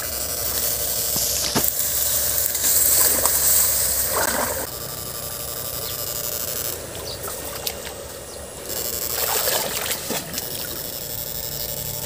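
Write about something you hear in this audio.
Feet wade and splash through shallow water.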